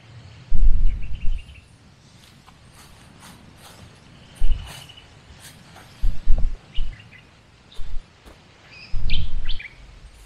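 Footsteps rustle through dry grass some distance away.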